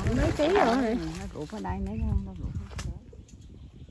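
Leaves rustle as branches are pushed aside.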